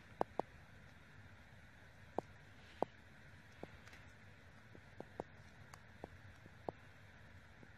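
Plastic headphone bands click and tap together in a hand.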